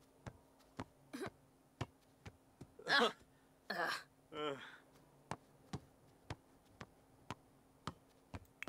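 A ball is kicked again and again with short, regular thuds.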